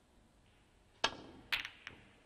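A snooker cue strikes the cue ball.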